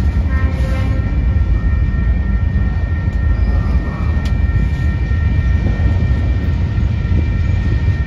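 Metal wheels squeal with a steady high whine.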